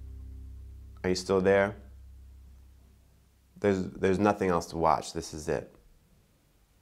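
A young man speaks calmly and close by, in short phrases.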